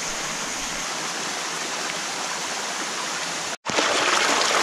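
A stream trickles softly over stones.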